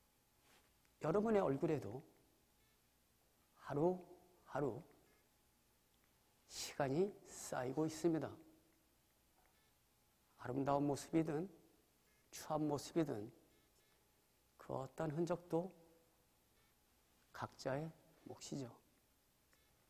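A man speaks calmly in short phrases through a microphone, amplified in a large hall.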